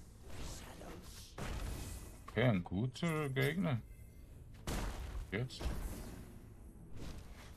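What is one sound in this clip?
Magic projectiles whoosh and hiss.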